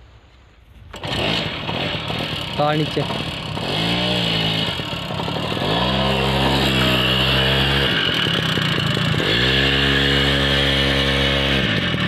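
A motorcycle engine revs hard.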